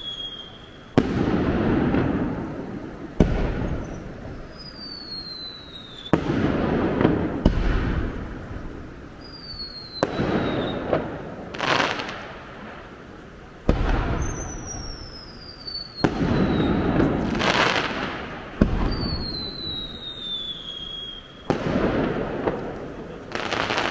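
Fireworks burst with loud booms that echo around.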